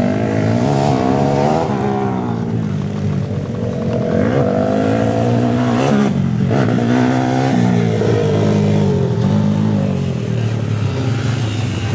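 Small dirt bike engines whine and rev nearby, rising and falling in pitch.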